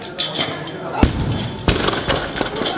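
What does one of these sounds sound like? A heavy barbell crashes down onto a lifting platform with a loud thud.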